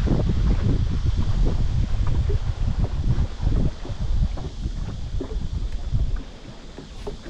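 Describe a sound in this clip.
Wind blusters across open water.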